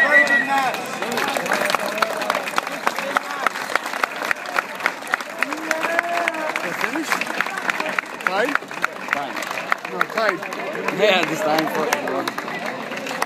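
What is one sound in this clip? Spectators clap and cheer as a match ends.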